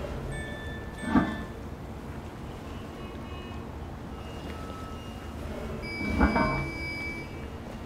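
A heavy metal manhole cover scrapes and clanks as it is lifted.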